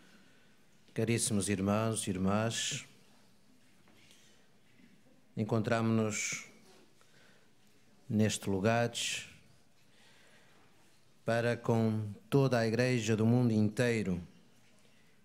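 A middle-aged man chants in short, measured phrases through a microphone.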